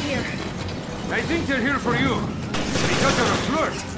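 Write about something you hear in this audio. A monster snarls and growls close by.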